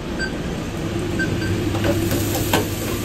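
Oil sizzles in a deep fryer.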